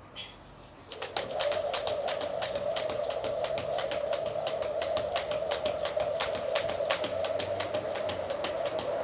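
A skipping rope slaps the ground in a quick, steady rhythm.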